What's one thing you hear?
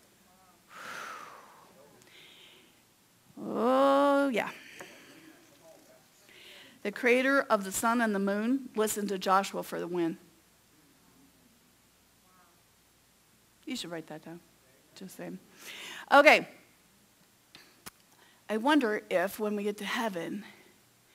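A middle-aged woman speaks expressively into a microphone, with pauses, in a slightly echoing room.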